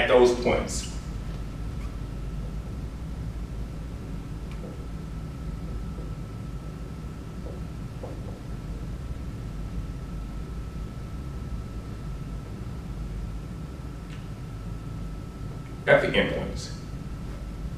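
A man speaks briefly.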